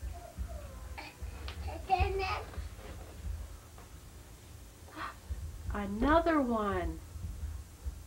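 A small child babbles and squeals.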